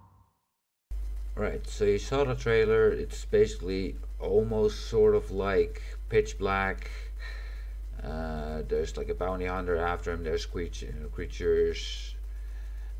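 A young man talks calmly and close to a computer microphone.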